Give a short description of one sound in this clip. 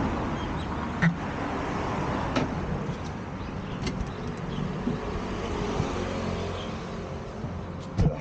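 A bicycle rattles and knocks as it is lifted into a van.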